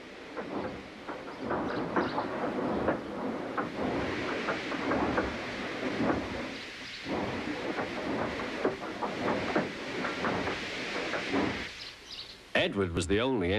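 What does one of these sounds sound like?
A steam engine chuffs steadily along the rails.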